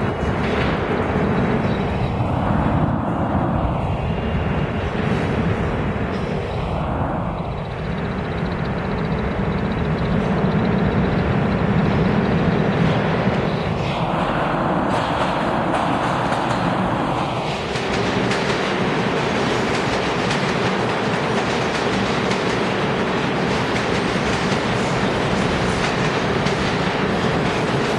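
A subway train rumbles and roars loudly through an echoing tunnel.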